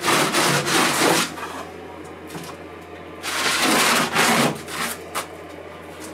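A sanding block scrapes across a foam surface.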